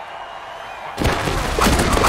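Players crash together in a heavy tackle.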